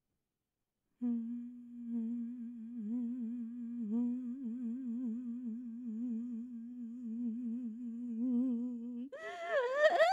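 A keyboard plays a low, steady droning note.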